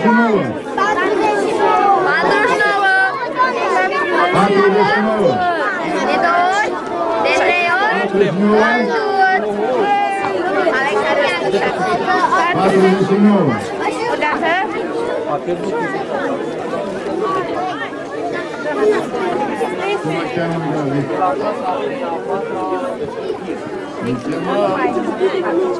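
A crowd of children and adults chatters in the background.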